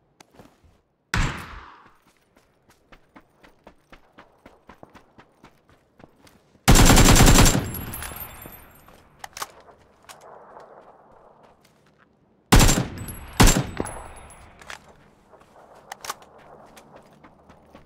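Footsteps crunch quickly over ground.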